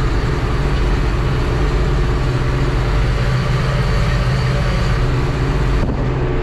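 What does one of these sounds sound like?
A tractor engine drones steadily and loudly from inside the cab.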